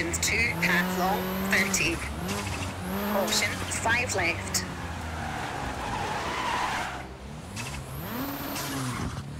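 A rally car engine roars and revs up and down as gears shift.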